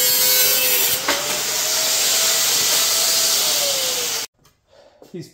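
An angle grinder screams loudly as it cuts through metal.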